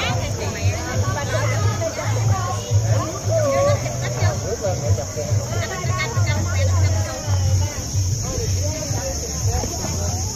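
Fish splash and churn at the surface of the water.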